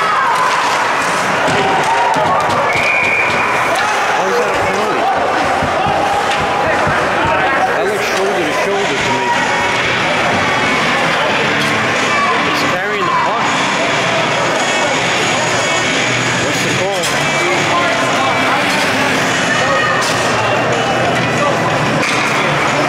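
Skates scrape across ice.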